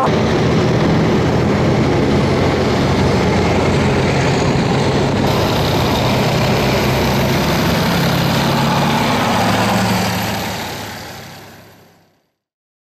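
An eight-wheeled armoured vehicle's diesel engine rumbles as it drives past.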